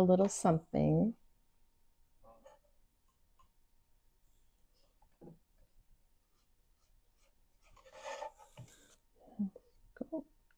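A small brush taps and strokes on a wooden surface.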